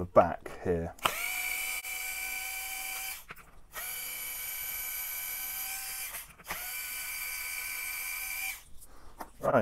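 A cordless power tool whirs in several steady bursts.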